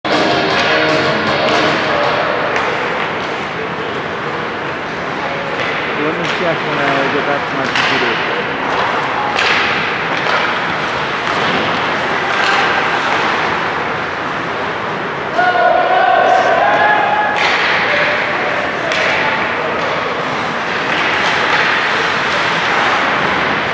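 Skates scrape and hiss across ice in a large echoing rink.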